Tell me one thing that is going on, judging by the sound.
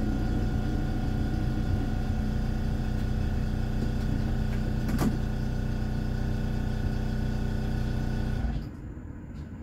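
A tram's motor hums steadily as the tram rolls along the rails, then cuts out abruptly.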